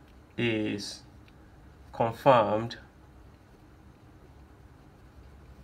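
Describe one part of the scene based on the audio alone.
A marker squeaks softly across paper.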